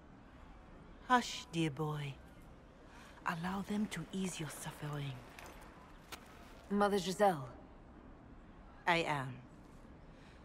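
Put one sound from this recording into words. A woman speaks calmly and clearly, close up.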